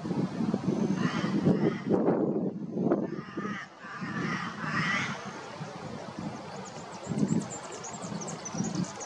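A small bird chirps and trills nearby.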